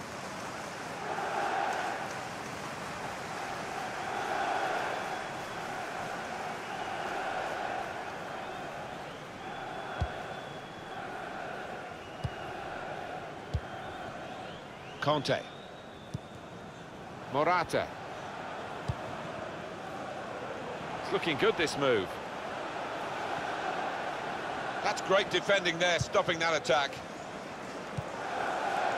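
A large stadium crowd roars and murmurs steadily.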